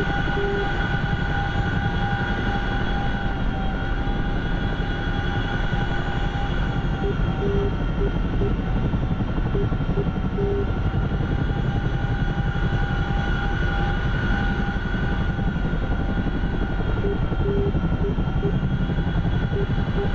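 A helicopter's rotor thumps steadily, heard from inside the cabin.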